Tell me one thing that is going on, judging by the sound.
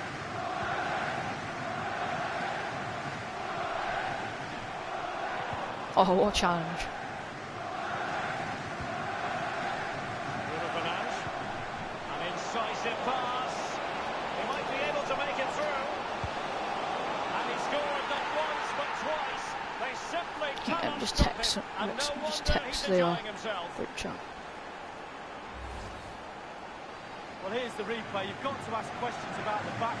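A stadium crowd chants and cheers loudly.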